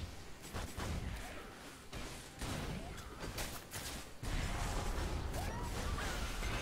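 Game spells crackle and burst in quick bursts.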